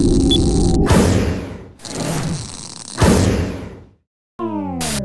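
Static hisses loudly.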